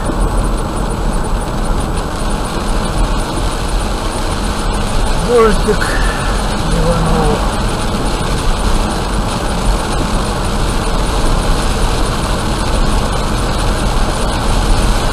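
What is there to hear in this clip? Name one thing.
A car drives steadily along a wet road with a low rumble of tyres.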